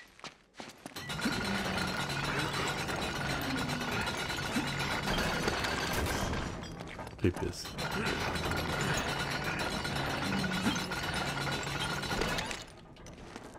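A winch creaks and grinds steadily as it is cranked.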